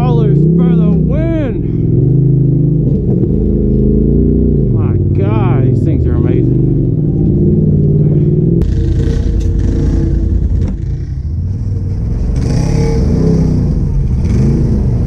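An off-road engine revs up and down, rising and falling in pitch.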